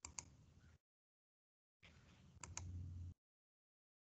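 An elderly woman speaks quietly through an online call.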